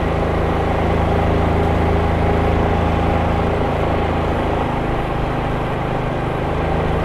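A motorcycle engine hums steadily up close, its pitch easing slightly.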